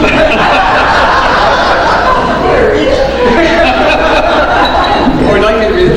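An elderly man laughs into a microphone.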